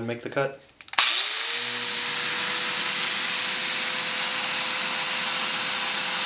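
A power tool's motor spins up with a rising whine and then runs steadily.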